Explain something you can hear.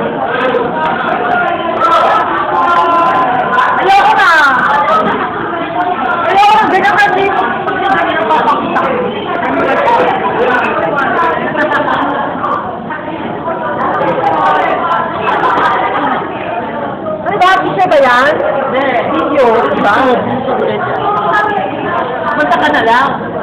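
Several young people chatter in the background.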